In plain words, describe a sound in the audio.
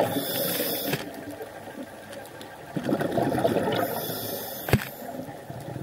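Dolphins click underwater.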